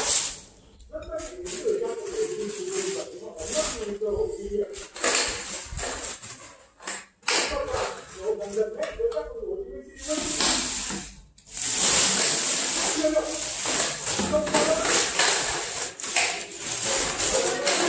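A plastic bag rustles as a hand rummages inside it.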